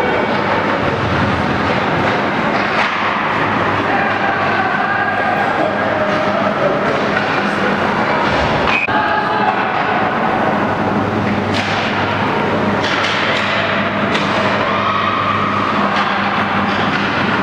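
Ice skates scrape across the ice in a large echoing rink.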